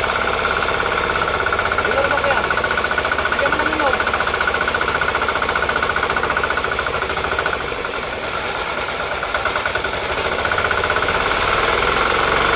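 An engine runs loudly with a fast, steady chugging.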